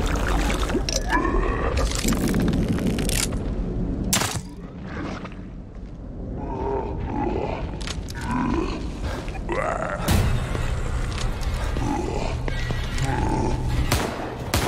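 A large monster growls and snarls.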